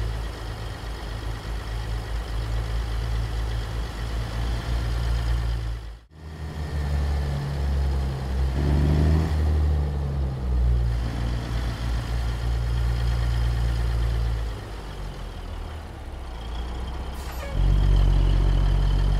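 A truck's diesel engine idles with a deep, steady rumble.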